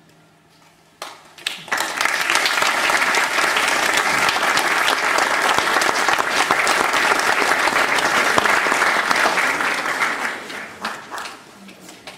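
An audience claps loudly, then the applause dies away.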